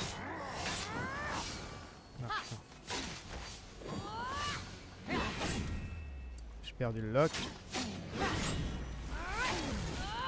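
Magic bursts whoosh and chime.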